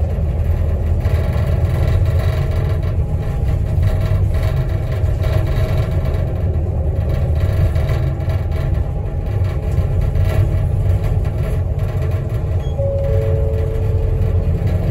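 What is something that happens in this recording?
Tyres roll on the road with a steady low roar.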